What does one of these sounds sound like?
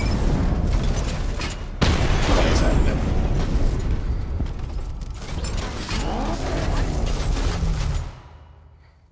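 Explosions and gunfire boom loudly.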